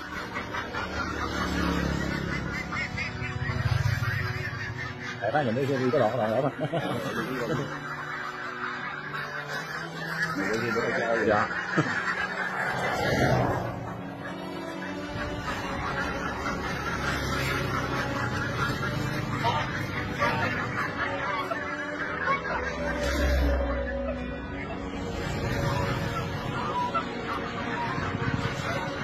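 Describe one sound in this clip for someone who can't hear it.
A large flock of ducks quacks noisily.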